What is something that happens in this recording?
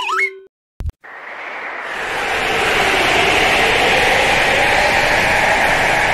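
A cloud of smoke bursts with a loud, steady rushing roar.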